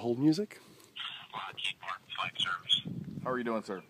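A man's voice answers faintly through a phone.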